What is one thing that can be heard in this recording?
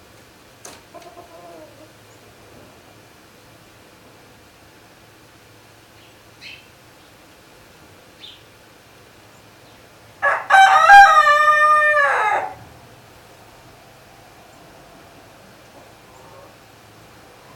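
Chickens cluck softly.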